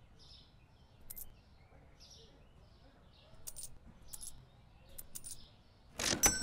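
Coins clink into a cash register drawer.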